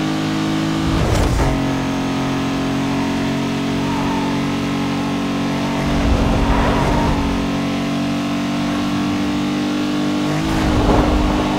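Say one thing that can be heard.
A racing car engine briefly drops in pitch as it shifts gear.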